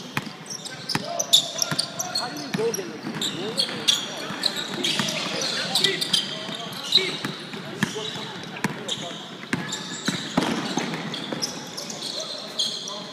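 A basketball bounces on a wooden court in a large echoing gym.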